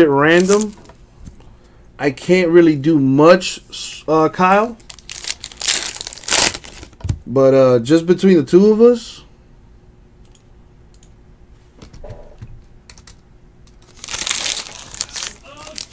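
A foil wrapper crinkles as hands tear it open.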